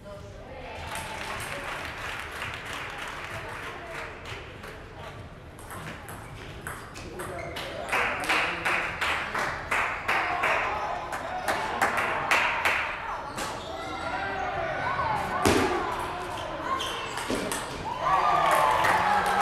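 A table tennis ball clicks back and forth between bats and table in a large echoing hall.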